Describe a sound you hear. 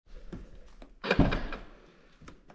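A car door latch clicks open.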